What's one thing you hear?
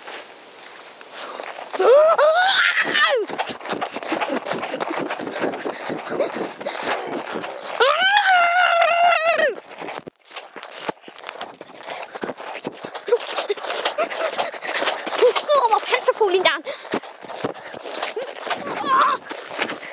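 Rustling and bumping from handling the recorder fill the sound.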